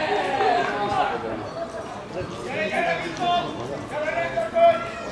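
Adult men shout to each other outdoors.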